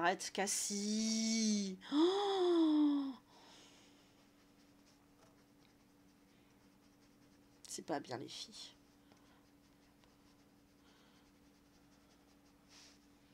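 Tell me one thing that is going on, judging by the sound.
A marker scratches softly on paper.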